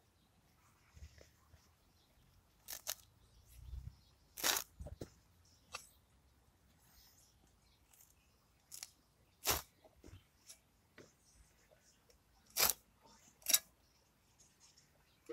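A spade crunches into grassy soil.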